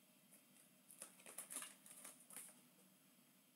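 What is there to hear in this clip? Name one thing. A hand pats and brushes against a stack of cardboard boxes.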